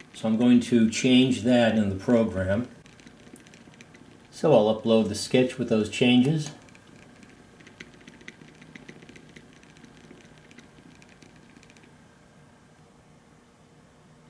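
A small motor whirs and ticks softly as it turns a disc.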